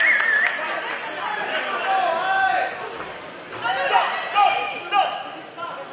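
A crowd shouts and cheers in a large hall.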